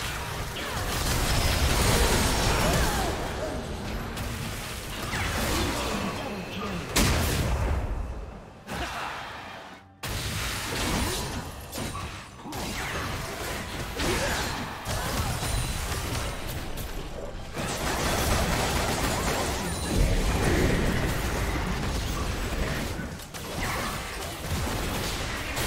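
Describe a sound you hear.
Magic blasts and clashing weapons crackle and boom in a fast fight.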